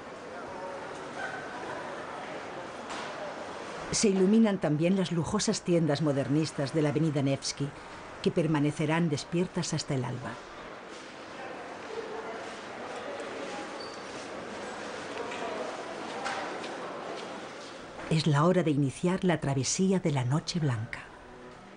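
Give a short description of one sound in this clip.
A crowd of customers murmurs quietly in an echoing room.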